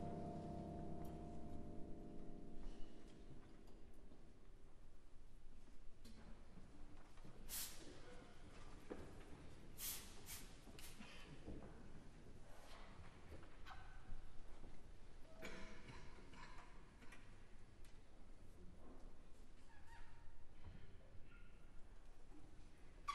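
An orchestra plays softly in a large hall.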